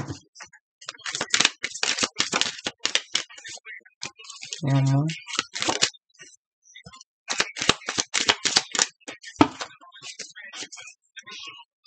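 Cards flick and rustle as they are shuffled by hand.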